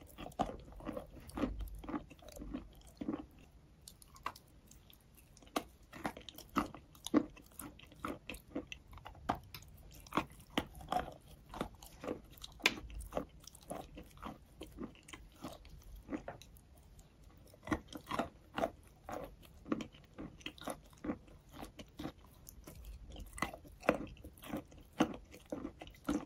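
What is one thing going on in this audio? A woman chews wet, crunchy food close to a microphone.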